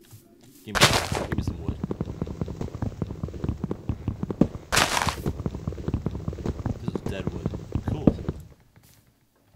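Wood is chopped with rapid, steady knocks.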